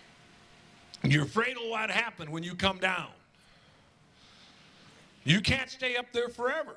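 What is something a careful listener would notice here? A middle-aged man preaches with animation into a microphone, in bursts with pauses.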